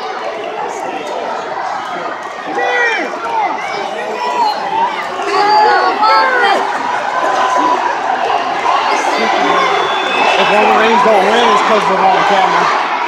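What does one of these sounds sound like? A large crowd cheers and chants loudly in a big echoing arena.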